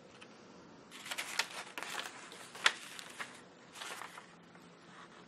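Paper pages rustle and crinkle as they are turned.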